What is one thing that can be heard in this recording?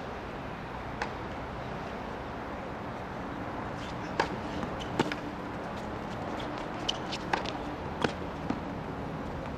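A tennis ball is struck with a racket, back and forth in a rally.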